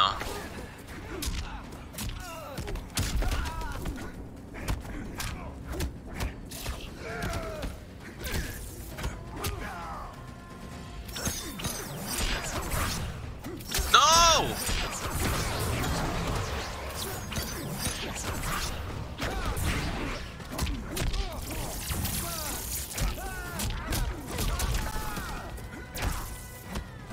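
Punches and kicks land with heavy, sharp thuds.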